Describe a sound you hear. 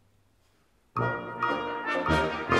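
An orchestra bursts into loud, lively music in a large hall.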